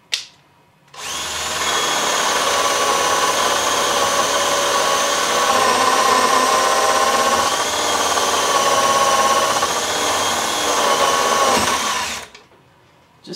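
A cordless drill whirs steadily, driving into wood.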